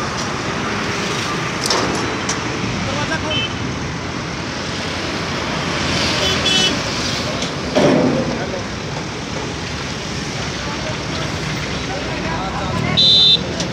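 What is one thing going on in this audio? Outdoors, steady street noise carries in the background.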